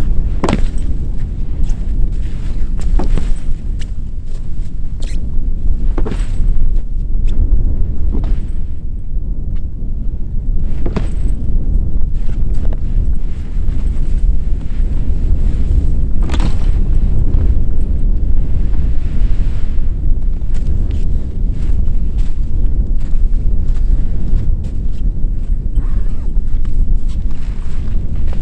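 Tent fabric flaps and rustles in the wind.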